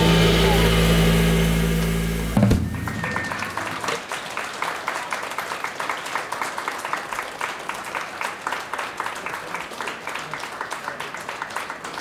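A double bass plucks a walking line.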